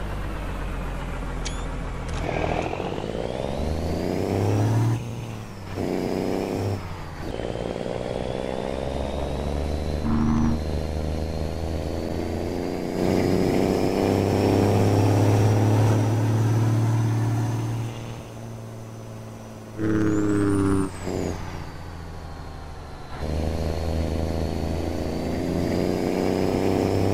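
A truck's diesel engine rumbles and revs up and down as the gears change.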